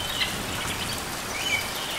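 A hummingbird's wings whir briefly as it lands.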